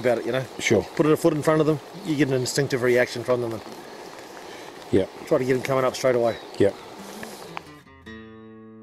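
A man speaks calmly close by, outdoors.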